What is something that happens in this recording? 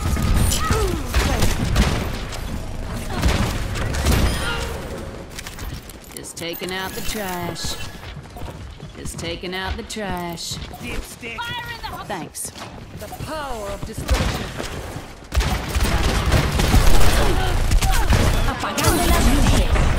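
A revolver fires loud shots in quick bursts.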